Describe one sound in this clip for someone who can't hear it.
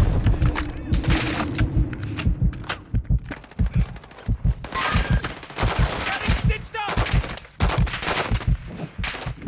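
Explosions boom and thud repeatedly nearby.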